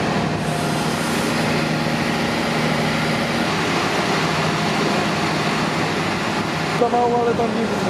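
A fire engine's motor idles with a steady low hum.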